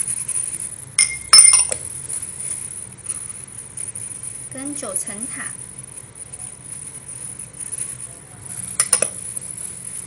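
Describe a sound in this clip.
A ceramic bowl clinks against a pot.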